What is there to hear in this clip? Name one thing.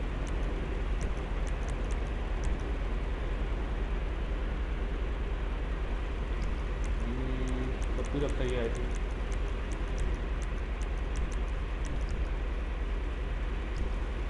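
Short soft clicks sound as menu options change.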